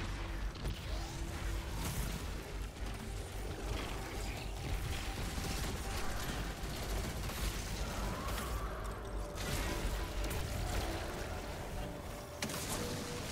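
Rapid gunfire rattles and bursts loudly.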